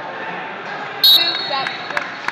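A whistle blows sharply.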